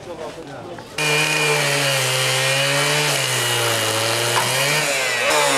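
An angle grinder cuts through metal with a loud, wavering whine.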